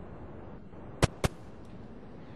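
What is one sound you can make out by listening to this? An explosion bangs sharply.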